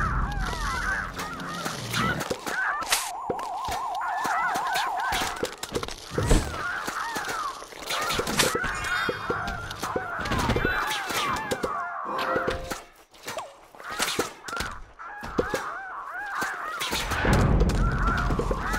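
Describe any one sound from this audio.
Cartoon plants fire with rapid popping sounds.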